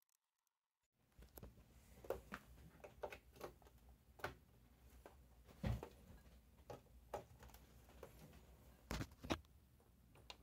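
Plastic parts clack as a casing is lifted and set down.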